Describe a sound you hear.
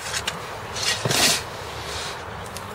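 A shovel scrapes through dry sand.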